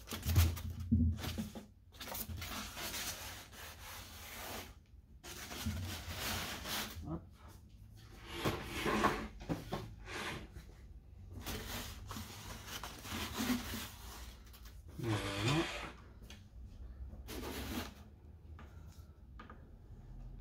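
Stiff foam sheets rustle and scrape as they are handled.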